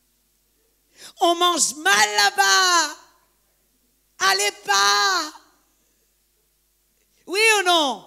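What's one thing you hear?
A woman sings through a microphone and loudspeakers in a large, echoing hall.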